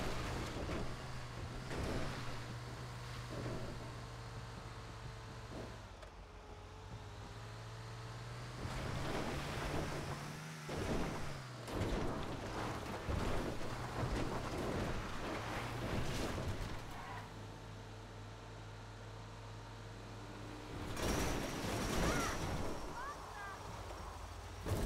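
A bus rattles and bumps over rough ground.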